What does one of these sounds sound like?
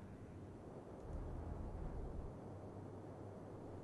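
A submarine surges through the waves.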